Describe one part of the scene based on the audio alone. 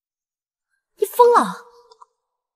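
A young man speaks sharply, close by.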